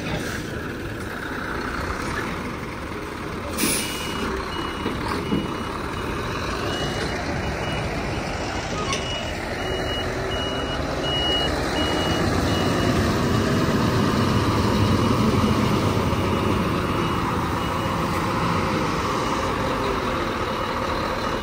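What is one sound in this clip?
A heavy truck engine rumbles close by as the truck slowly manoeuvres.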